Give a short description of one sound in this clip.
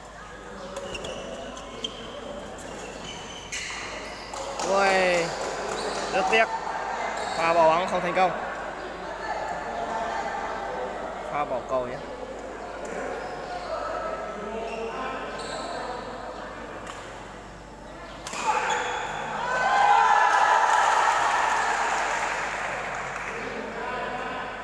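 A shuttlecock is kicked with sharp taps.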